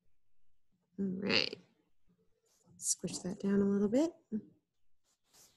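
A woman speaks briefly and calmly into a microphone.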